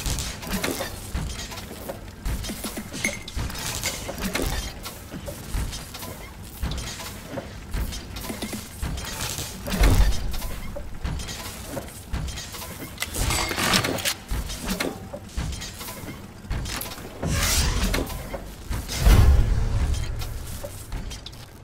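Game sound effects chime and whoosh in short bursts.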